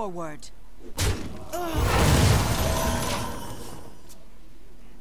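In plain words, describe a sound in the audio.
Game creatures clash with magical effects and a loud burst.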